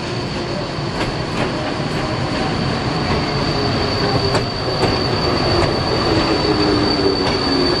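Wheels click over rail joints.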